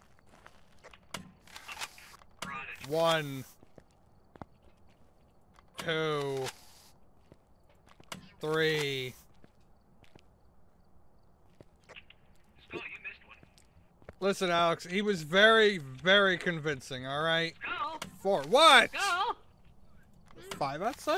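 A toy blaster fires puffs of spray with short hisses.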